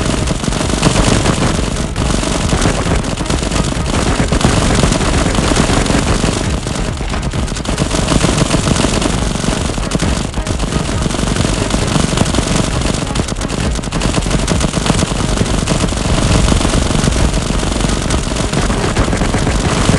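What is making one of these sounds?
Rapid gunfire rattles on without a break.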